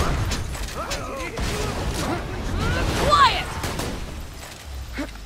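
Loud fighting sounds crash and thud.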